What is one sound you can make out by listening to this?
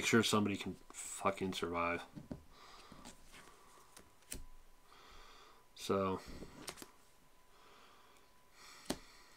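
Playing cards slide and tap softly on a table.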